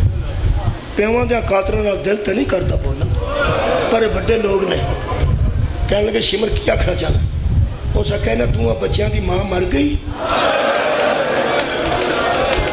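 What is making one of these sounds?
A middle-aged man speaks forcefully into a microphone, heard through loudspeakers.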